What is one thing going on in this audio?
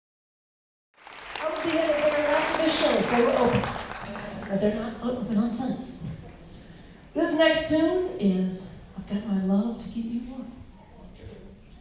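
A jazz big band plays with horns in a large hall.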